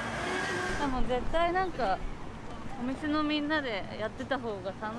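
A young woman talks calmly close by.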